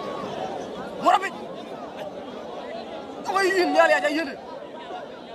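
Spectators shout and whoop loudly in bursts.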